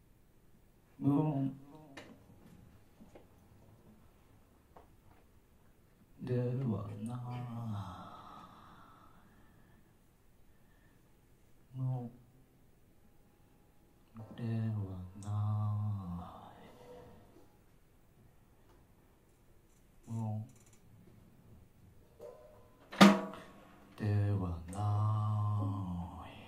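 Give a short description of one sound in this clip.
A saxophone plays short phrases with pauses between them.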